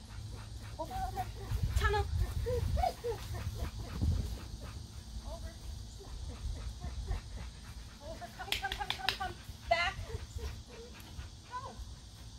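A woman calls out and gives commands with animation outdoors.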